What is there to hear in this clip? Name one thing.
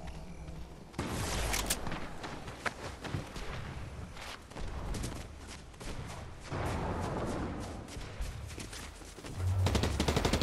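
Footsteps patter quickly over grass and stone.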